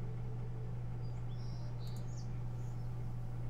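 Soft high chimes ring out briefly.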